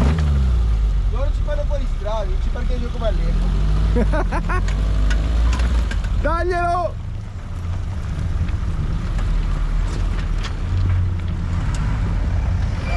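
Rocks crunch and clatter under large tyres.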